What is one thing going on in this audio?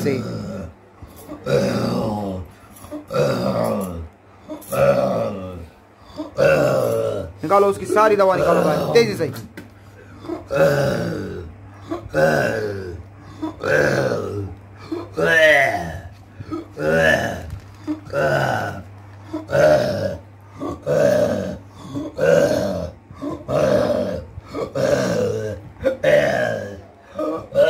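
A man groans loudly in short, repeated bursts close by.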